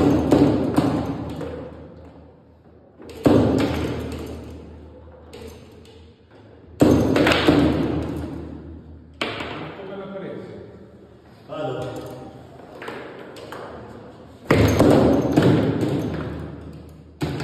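A foosball ball cracks against plastic players and the table walls, echoing briefly.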